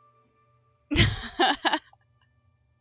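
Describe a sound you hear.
A young woman laughs briefly into a close microphone.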